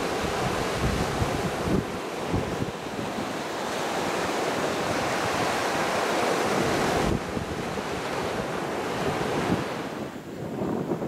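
Waves wash up onto a beach with a steady roar.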